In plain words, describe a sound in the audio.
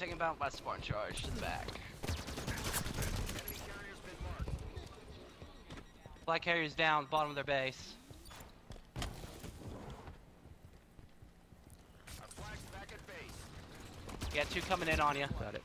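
Video game gunfire crackles in quick bursts.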